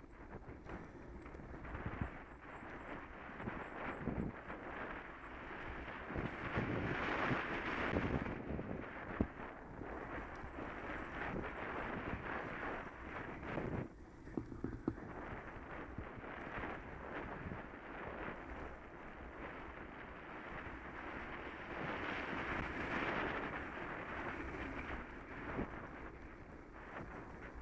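Wind rushes past a moving bike rider.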